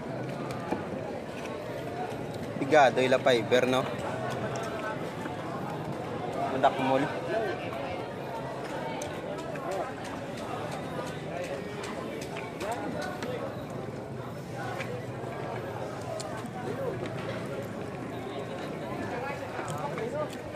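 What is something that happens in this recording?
Voices of several people chatter nearby outdoors.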